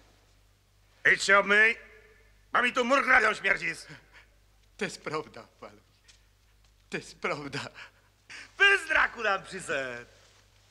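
A man speaks loudly and with animation, close by.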